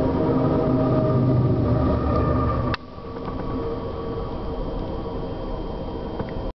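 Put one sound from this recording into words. A train rolls steadily along the tracks with a low rumble.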